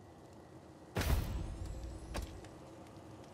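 A game's unlock sound effect plays with a short deep boom.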